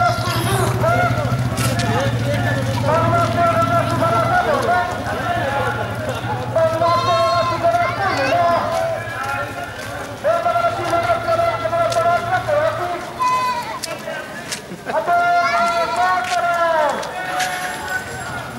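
A crowd of men chants slogans in unison outdoors.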